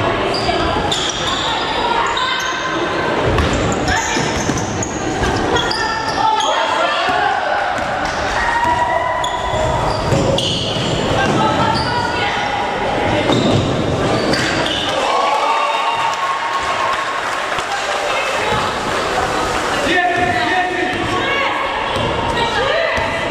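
Young women call out to each other across the hall.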